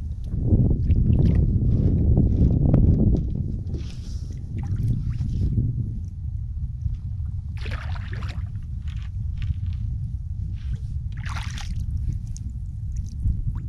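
Wind blows across open water, rumbling in the microphone.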